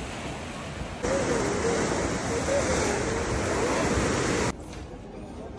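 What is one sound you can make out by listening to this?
Waves crash and foam against rocks.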